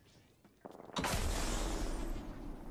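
Wind rushes loudly as a figure is launched through the air.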